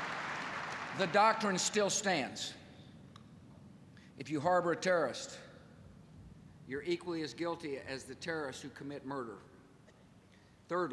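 A middle-aged man speaks firmly into a microphone over loudspeakers.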